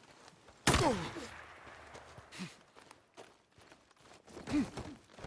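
Footsteps crunch quickly on dry dirt and gravel.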